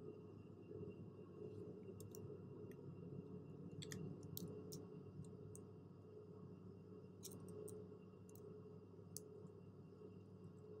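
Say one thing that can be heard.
A steady low hum drones inside an aircraft cockpit.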